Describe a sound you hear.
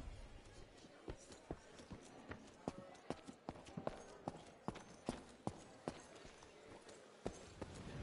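Footsteps knock on a wooden floor.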